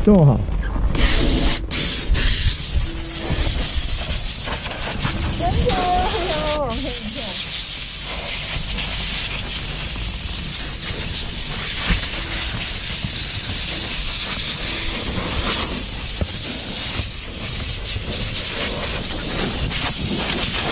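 Compressed air hisses loudly from a hose, blowing snow off boots.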